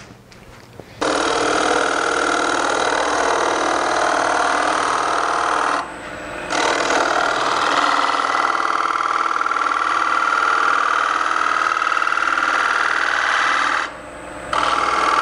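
A gouge scrapes and hisses against spinning wood.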